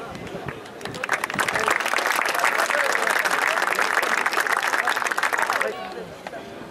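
A group of people clap their hands outdoors.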